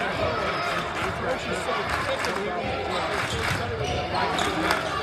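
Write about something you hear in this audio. A large crowd murmurs and chatters in an echoing gym.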